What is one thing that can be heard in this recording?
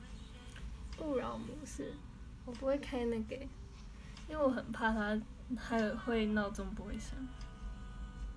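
A young girl talks casually close to a microphone.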